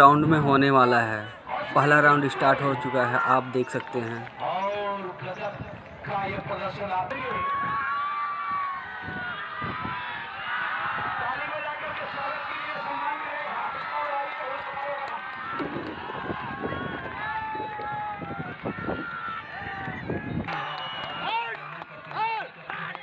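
A large crowd shouts and cheers outdoors.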